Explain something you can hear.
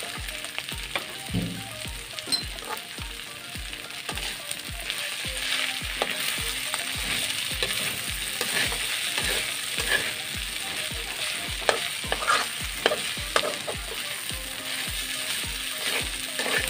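A metal spatula scrapes and clicks against a pan.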